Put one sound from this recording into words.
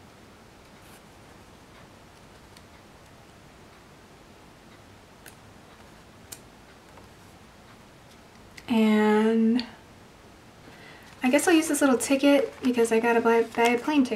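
Paper stickers rustle and crinkle softly as fingers press and peel them.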